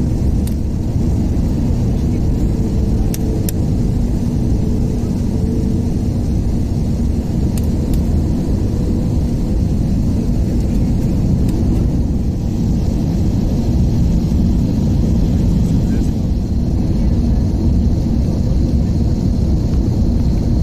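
A jet engine roars steadily inside an airliner cabin.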